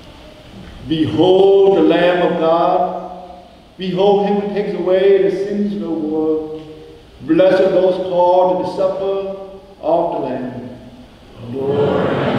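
A young man chants slowly through a microphone in an echoing hall.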